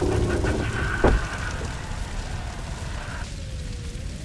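Steam hisses from a pipe.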